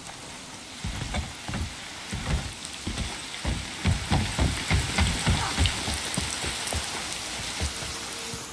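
Heavy footsteps thud on wooden boards.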